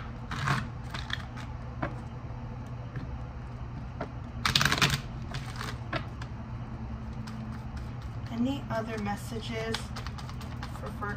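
Cards shuffle and riffle between hands.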